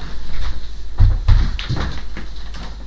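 Footsteps thump on a wooden stool.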